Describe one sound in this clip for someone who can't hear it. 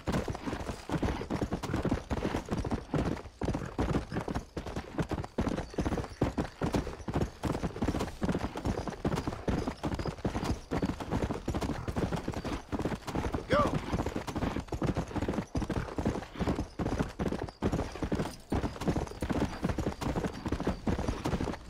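Horse hooves gallop rapidly on a dirt trail.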